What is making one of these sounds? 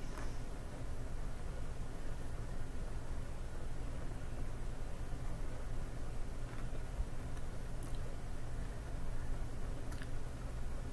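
A woman chews raw broccoli with a crunch.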